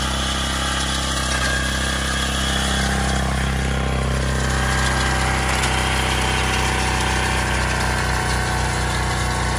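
A small engine runs loudly and steadily close by.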